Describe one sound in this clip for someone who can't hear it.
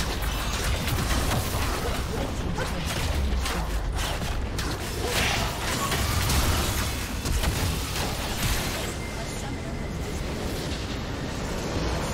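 Fantasy battle sound effects of spells and blasts clash and crackle.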